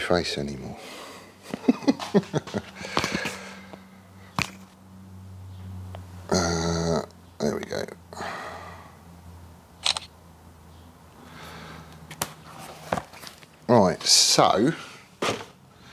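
A middle-aged man talks calmly close by.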